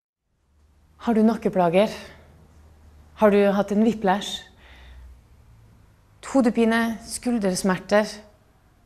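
A young woman speaks calmly and clearly into a nearby microphone, in short phrases with pauses.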